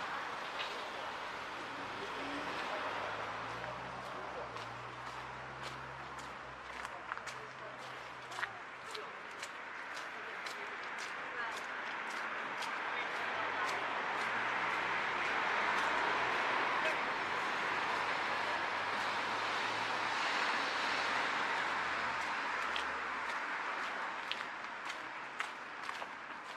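Footsteps crunch steadily on a rough path outdoors.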